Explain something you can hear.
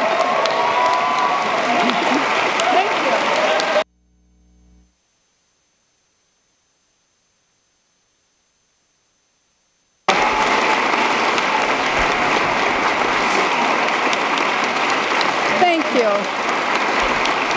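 People in a crowd cheer and call out.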